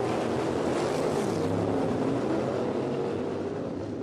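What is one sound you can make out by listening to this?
A racing car roars past close by.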